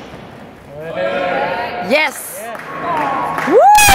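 Weight plates rattle as a barbell is lifted overhead in an echoing hall.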